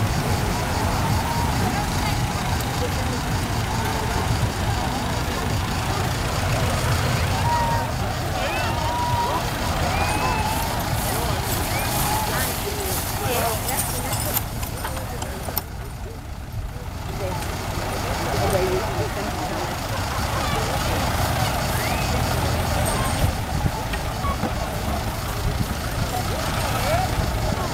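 A crowd chatters and murmurs outdoors.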